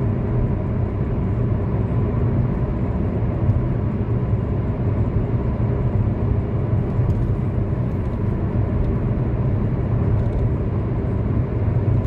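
Tyres roll on smooth road with a low, steady rumble.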